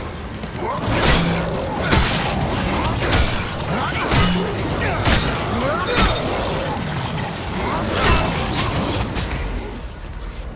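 A monster growls and roars close by.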